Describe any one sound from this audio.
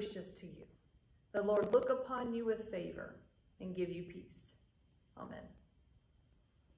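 A woman speaks calmly into a microphone in a room with a slight echo.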